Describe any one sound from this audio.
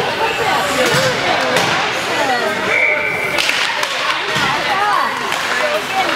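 Spectators and players chatter and call out in an echoing ice arena.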